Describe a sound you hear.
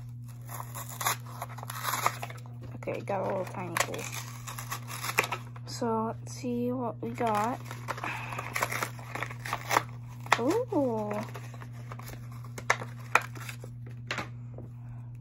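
Cards rustle and flick in a boy's hands.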